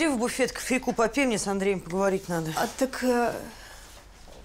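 A woman speaks calmly in a room.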